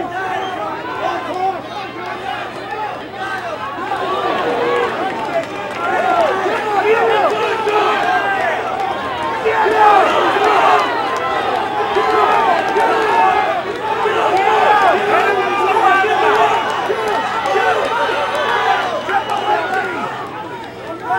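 A large crowd shouts and cheers loudly.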